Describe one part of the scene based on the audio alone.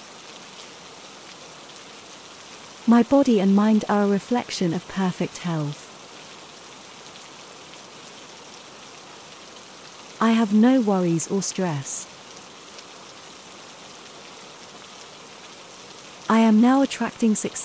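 Steady rain falls.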